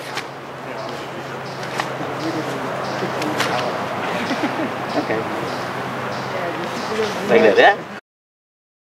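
A man speaks calmly and explains, close by.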